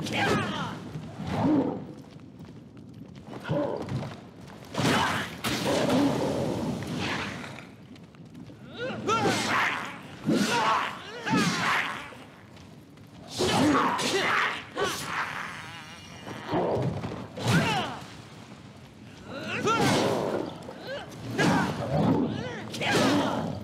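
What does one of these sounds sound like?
Metal blades clang against each other in a fight.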